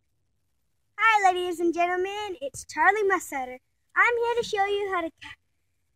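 A young girl talks up close, in a chatty way.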